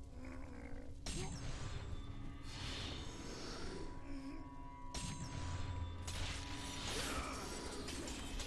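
Magical whooshing bursts ring out in bright flurries.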